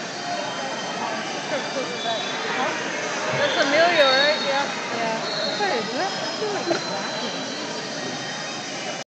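A crowd of people chatters and calls out in a large, echoing hall.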